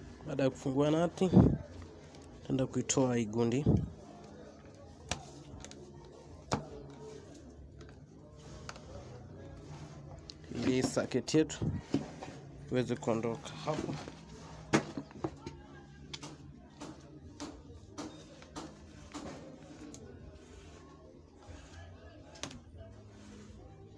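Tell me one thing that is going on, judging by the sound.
A small screwdriver clicks and taps against hard plastic.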